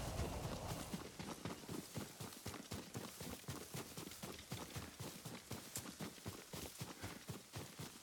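Quick footsteps run through rustling grass.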